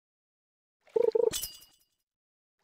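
A game chime sounds when a fish bites.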